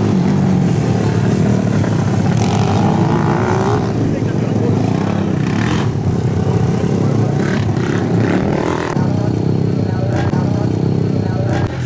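Small engines drone and whine across an open outdoor track.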